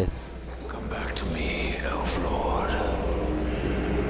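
A young man calls out with emotion.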